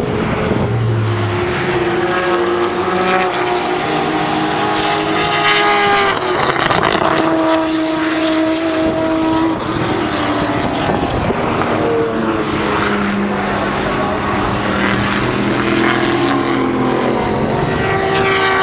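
A racing car engine roars loudly as it speeds past.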